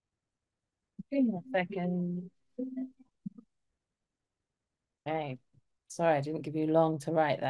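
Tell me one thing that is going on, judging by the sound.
A woman speaks calmly through a microphone, heard as on an online call.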